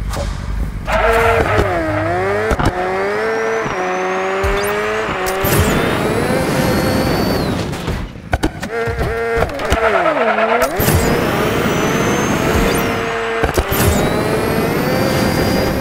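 A small motorbike engine whines and revs up and down.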